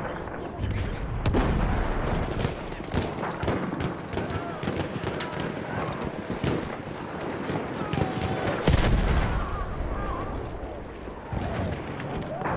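Heavy explosions boom and rumble nearby.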